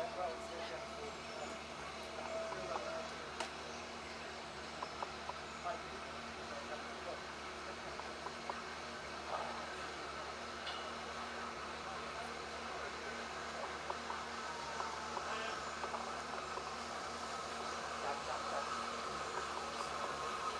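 A steam locomotive approaches, chugging and rumbling steadily louder.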